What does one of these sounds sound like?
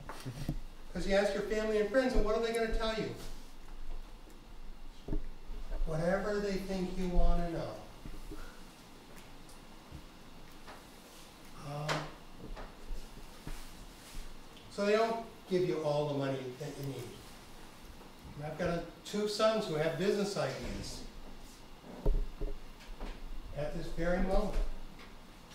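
A middle-aged man speaks calmly in short bursts with pauses.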